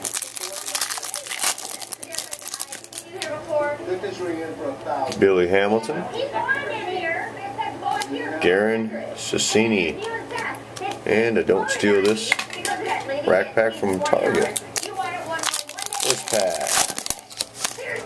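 A plastic wrapper crinkles as hands tear it open.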